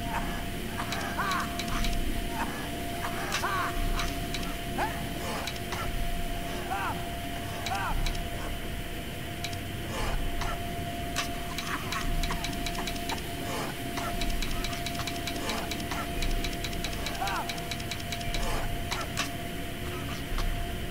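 Short clicks sound as metal pipe pieces turn into place.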